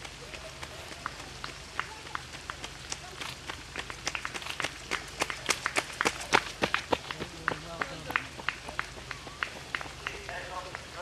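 Running footsteps slap on a wet road, growing louder as they come close and then fading away.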